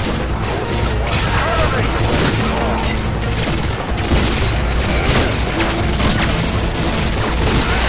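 A shotgun blasts loudly.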